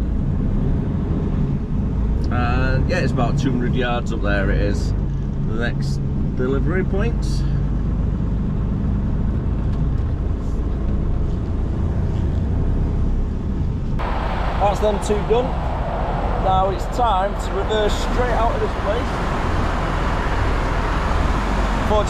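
A bus engine rumbles steadily as the vehicle drives along a road.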